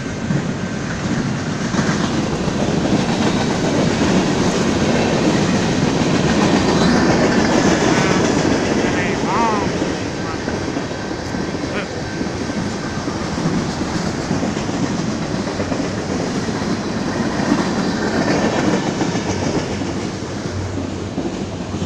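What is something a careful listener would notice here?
A freight train rumbles and clatters steadily past nearby.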